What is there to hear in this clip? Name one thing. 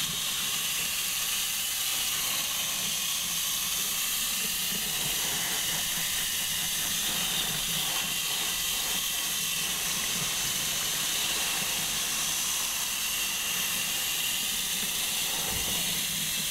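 Hands rub and squelch through wet hair.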